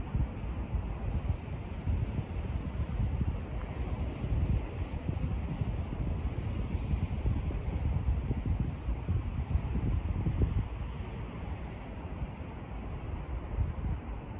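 Wind gusts and buffets loudly outdoors.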